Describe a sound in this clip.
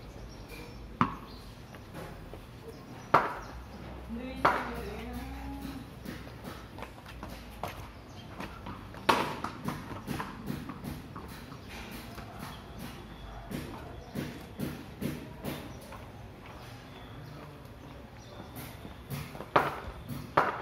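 A cricket bat strikes a ball with sharp knocks.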